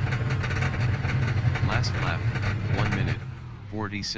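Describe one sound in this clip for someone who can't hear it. A race car engine roars loudly.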